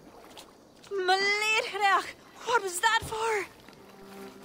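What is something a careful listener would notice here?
A young woman speaks up in distress, close by.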